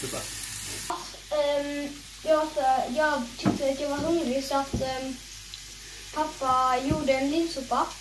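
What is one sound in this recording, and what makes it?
A young girl speaks calmly nearby.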